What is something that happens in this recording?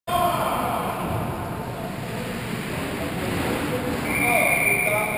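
Ice skates scrape and glide across the ice in a large echoing rink.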